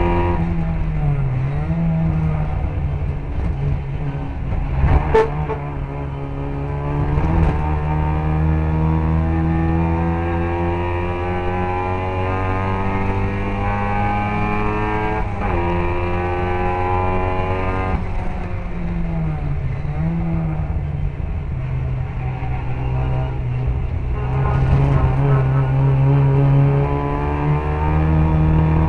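A racing car engine roars loudly from close by, its pitch rising and falling with the gear changes.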